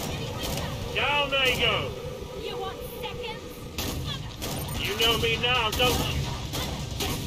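Monsters screech and growl.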